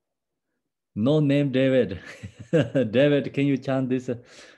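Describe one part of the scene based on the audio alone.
Several people laugh through an online call.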